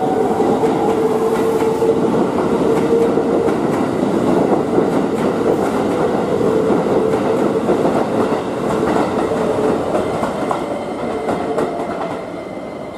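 A train rumbles past close by, its wheels clattering over rail joints.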